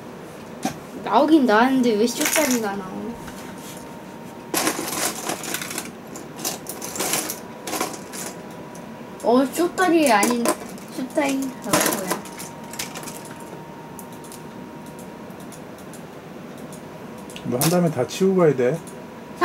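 A young boy talks nearby in a cheerful voice.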